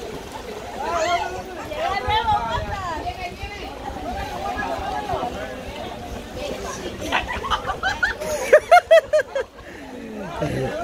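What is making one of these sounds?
Water splashes as people wade and swim.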